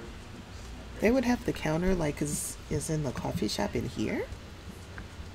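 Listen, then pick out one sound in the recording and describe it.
A young woman talks with animation into a microphone, close by.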